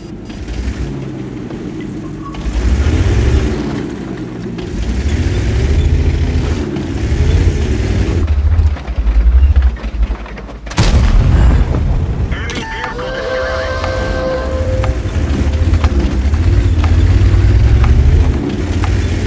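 A tank engine rumbles and roars as it drives.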